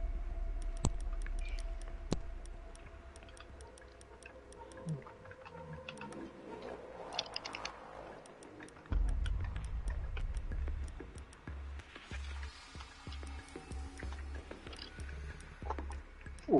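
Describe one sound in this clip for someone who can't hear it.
Short menu clicks sound as selections change.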